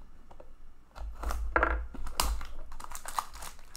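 Cardboard packaging crinkles and rustles as it is torn open.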